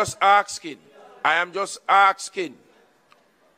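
A man speaks firmly into a microphone.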